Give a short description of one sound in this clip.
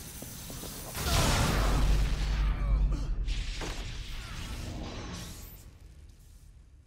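A loud crackling, rumbling burst fades away.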